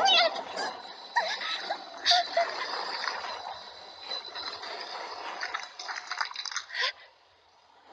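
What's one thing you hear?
A young woman groans and cries out in pain.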